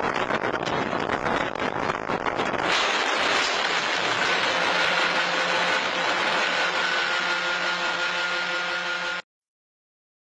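A truck runs off the road and rolls over, crashing and scraping.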